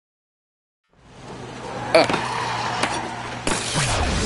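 Skateboard wheels roll and grind along a rail.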